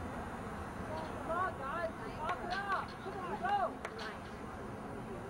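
Teenage boys call out loudly across an open field.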